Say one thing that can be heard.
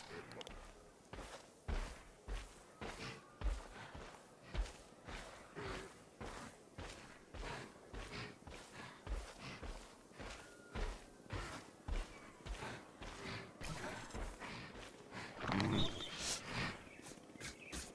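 Light footsteps patter quickly and steadily through grass.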